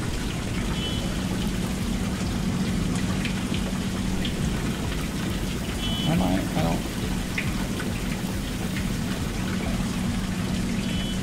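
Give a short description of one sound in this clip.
A water pump motor hums steadily.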